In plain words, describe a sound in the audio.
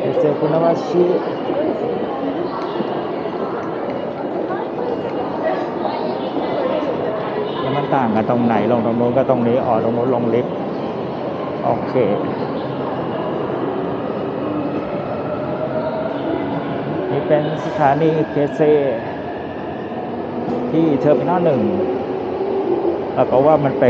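Footsteps and distant voices echo in a large hall.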